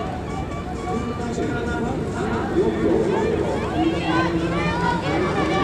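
A crowd cheers and shouts loudly nearby.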